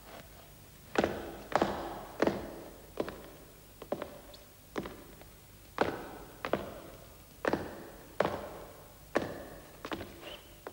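Heavy footsteps thud slowly on stone, echoing in a large hall.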